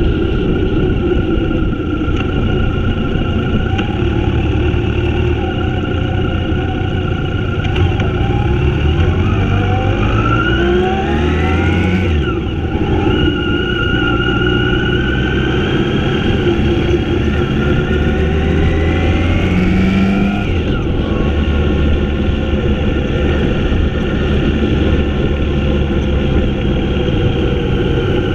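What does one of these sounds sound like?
A motorcycle engine hums steadily close by, rising and falling in pitch as it speeds up and slows down.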